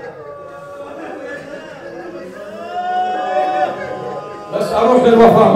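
A man chants with emotion into a microphone, heard over a loudspeaker in a reverberant hall.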